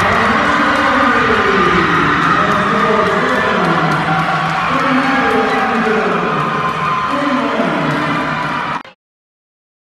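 A crowd cheers and screams loudly in an echoing gym.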